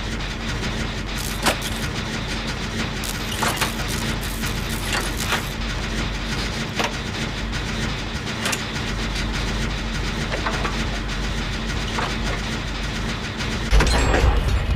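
A generator engine rattles and clanks steadily.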